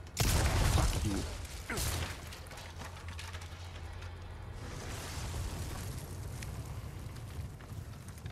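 Flames crackle and roar.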